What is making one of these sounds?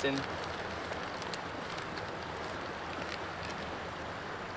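A plastic bag crinkles in someone's hands.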